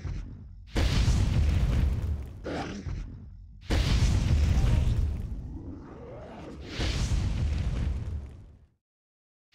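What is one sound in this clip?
Explosions boom and roar in bursts.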